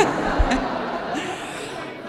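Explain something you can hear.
A woman laughs through a microphone.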